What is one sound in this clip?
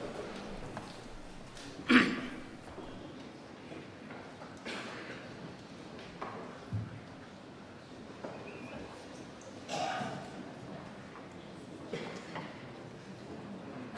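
A crowd of men and women murmurs quietly in a large room.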